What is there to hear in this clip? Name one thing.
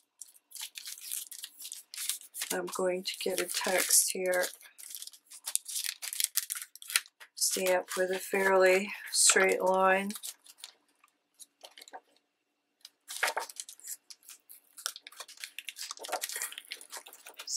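A thin plastic sheet crinkles and rustles as it is handled.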